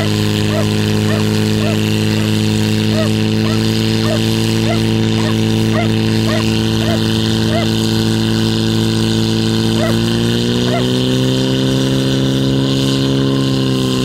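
A pump engine roars steadily close by, then revs higher.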